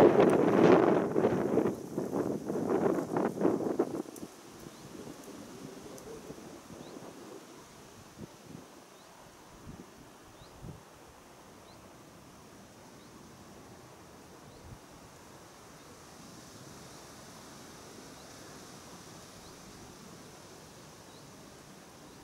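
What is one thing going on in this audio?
Wind gusts roughly against the microphone outdoors, then dies down to a soft breeze.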